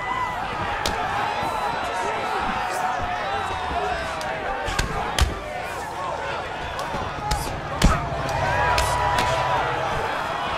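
A crowd murmurs and cheers throughout.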